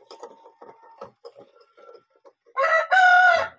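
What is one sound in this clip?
Small objects clink softly on a table.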